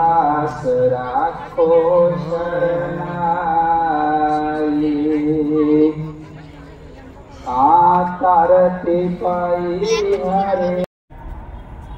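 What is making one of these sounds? A man sings a slow, drawn-out chant over loudspeakers outdoors.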